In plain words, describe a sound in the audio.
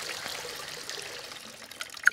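Water runs from a tap into a bathtub.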